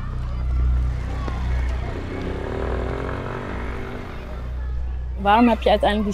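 A motor scooter engine hums as it rides past.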